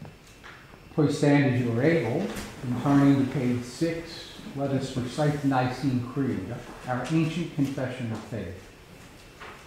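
An elderly man reads aloud calmly into a microphone in a softly echoing room.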